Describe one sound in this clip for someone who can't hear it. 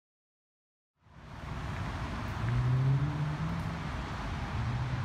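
Wind blows softly outdoors.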